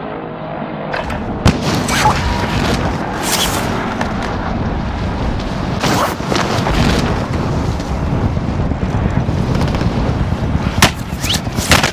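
Wind rushes steadily past during a parachute descent.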